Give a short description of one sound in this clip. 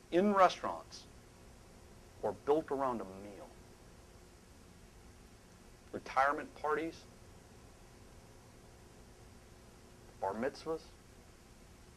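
A middle-aged man speaks with animation into a microphone, in short bursts with long pauses.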